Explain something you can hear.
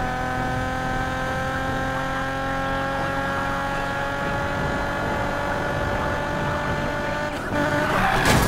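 A sports car engine roars at high speed, slowly rising in pitch.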